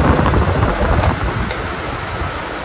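A fan switch clicks.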